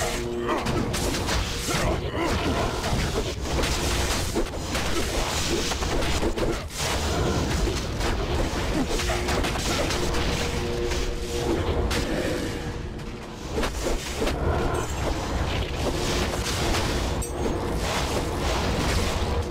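Game monsters growl and shriek as they are struck.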